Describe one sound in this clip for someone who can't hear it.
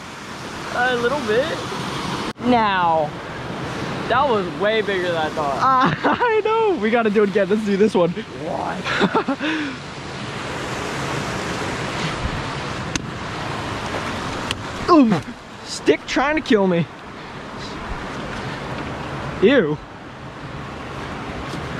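A stream rushes and splashes over rocks nearby.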